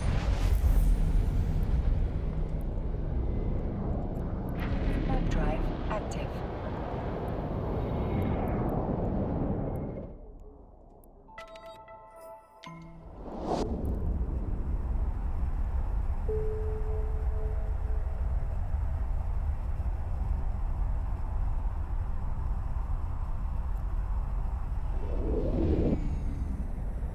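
A deep spaceship engine rumbles steadily.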